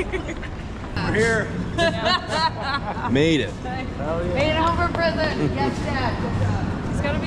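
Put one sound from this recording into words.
A young woman laughs and talks excitedly.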